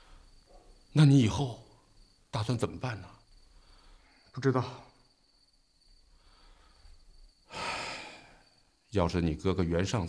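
A middle-aged man speaks in a low, serious voice nearby.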